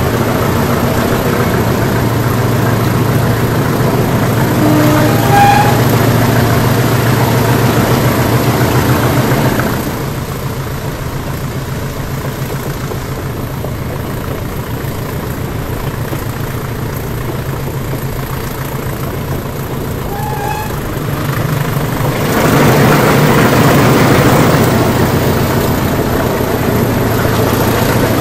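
The rumble of a moving train grows louder and echoes inside a tunnel.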